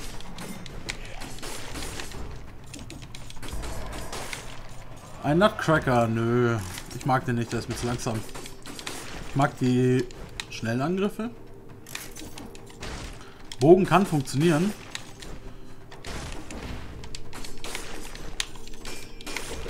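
Quick sword slashes and hits clatter in a fast game fight.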